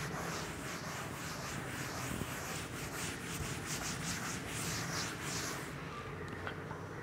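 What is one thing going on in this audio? A duster rubs across a chalkboard.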